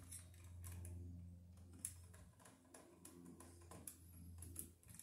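Wires and a small tool click and scrape close by.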